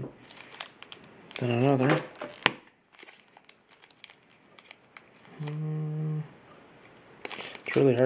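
Foil packs crinkle and rustle as hands shuffle them.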